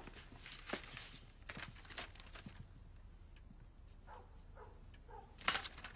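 Paper rustles in a man's hands.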